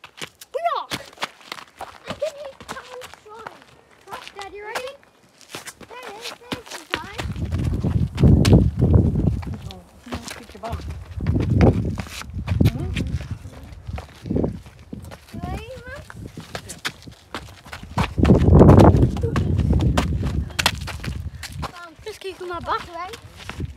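A young child speaks and shouts excitedly close by.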